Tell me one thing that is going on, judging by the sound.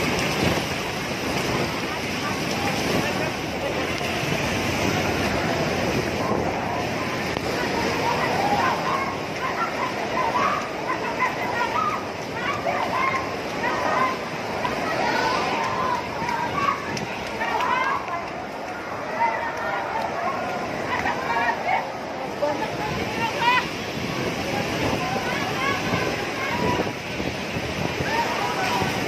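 Floodwater rushes and roars loudly outdoors.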